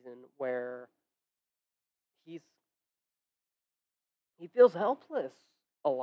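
A young man speaks with animation through a microphone, in short bursts with pauses.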